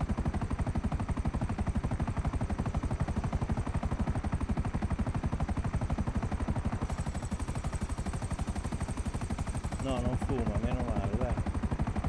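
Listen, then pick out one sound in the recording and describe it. A helicopter's rotor blades thump rapidly and steadily.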